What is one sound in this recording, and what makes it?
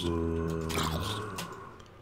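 A sword strikes a game creature with a thud.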